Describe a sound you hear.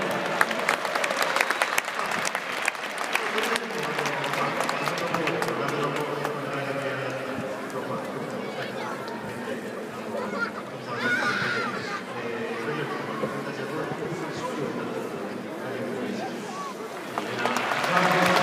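A large stadium crowd chants and sings together, echoing widely.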